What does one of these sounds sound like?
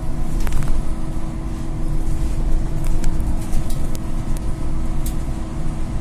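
Loose parts of the bus rattle and click now and then.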